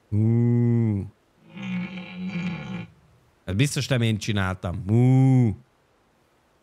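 A deer mating call bellows in long, low blasts.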